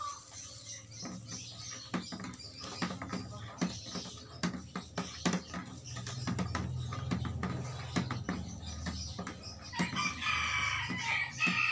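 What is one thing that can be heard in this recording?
A stick plunges and thumps repeatedly in a bucket of water.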